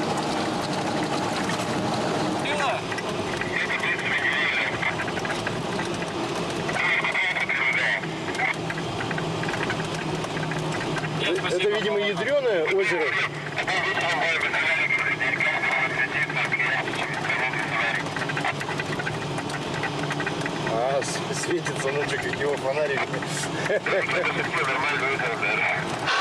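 A vehicle's engine drones steadily from inside the cab.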